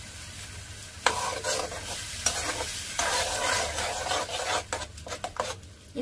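A spoon scrapes and stirs a thick batter in a metal pan.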